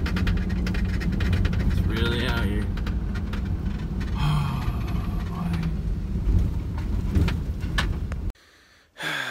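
A car rumbles along a gravel road.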